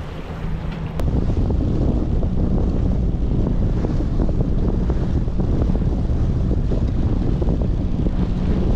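Wind buffets loudly outdoors on the water.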